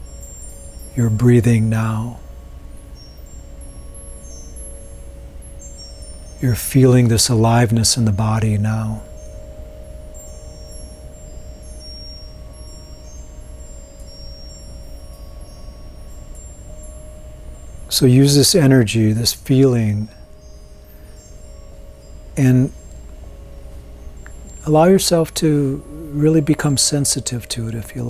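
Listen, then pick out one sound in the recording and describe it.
A man speaks calmly and slowly into a close microphone, with long pauses.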